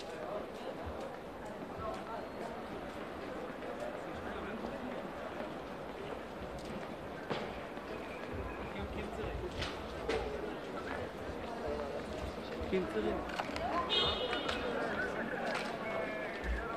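Footsteps scuff on pavement close by.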